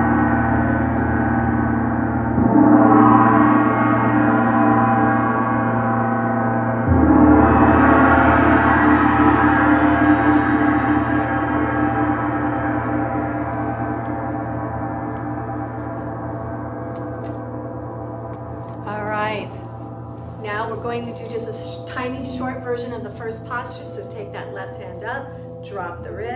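A large gong hums with a deep, shimmering ring that swells when struck and slowly fades.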